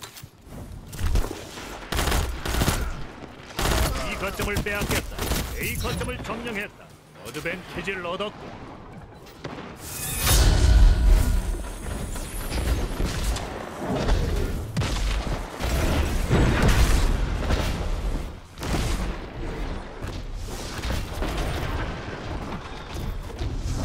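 Gunfire rings out in rapid bursts.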